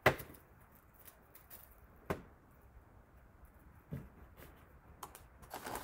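Strawberry tops are pulled off with soft snaps.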